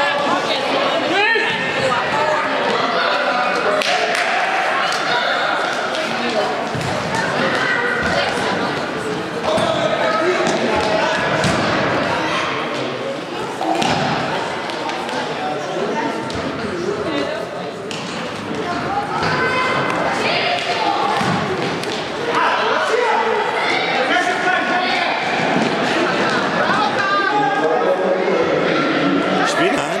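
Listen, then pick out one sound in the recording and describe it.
Children and adults shout and cheer in a large echoing hall.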